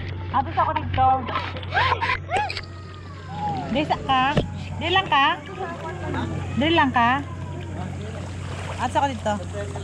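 Water splashes as children swim in a pool.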